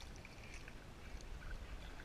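A kayak paddle dips and splashes softly in calm water.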